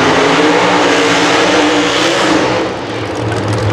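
Race car engines roar loudly during a burnout.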